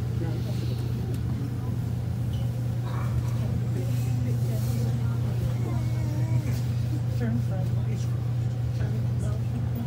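An elevator hums steadily as the car moves.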